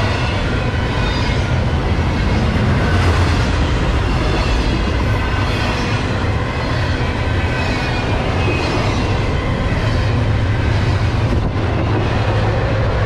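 Train wheels clatter rhythmically over the rail joints.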